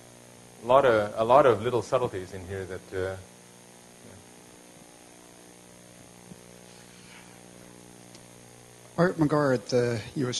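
A man speaks calmly through a microphone in a large echoing room.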